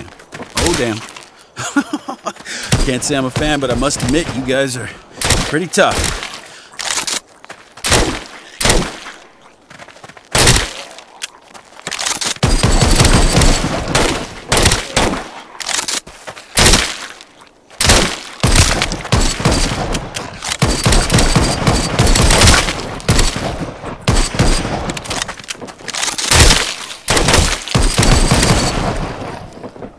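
Gunshots ring out in quick, repeated bursts.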